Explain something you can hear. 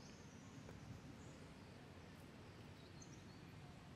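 Dry leaves rustle as monkeys move over the ground.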